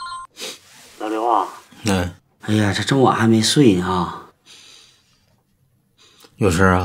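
A middle-aged man speaks calmly into a phone.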